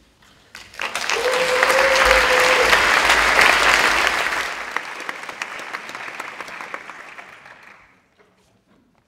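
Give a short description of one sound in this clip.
A crowd applauds loudly in an echoing hall, then the clapping fades away.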